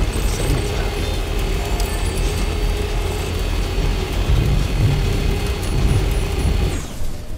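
A small car engine hums steadily as the car drives along a road.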